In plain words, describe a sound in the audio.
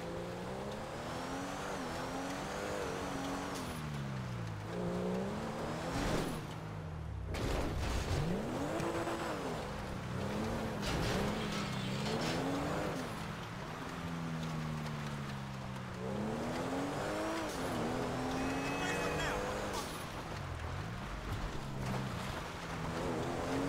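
A sports car engine revs up and down.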